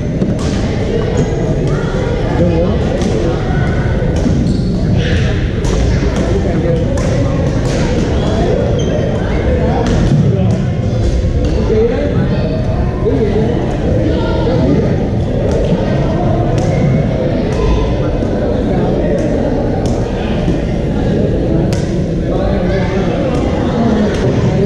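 Many players talk and call out in a large echoing hall.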